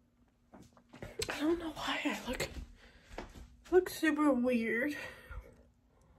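A young woman talks close to a phone microphone.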